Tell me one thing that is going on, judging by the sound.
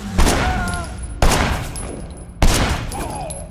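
Gunshots fire loudly and echo in a large hall.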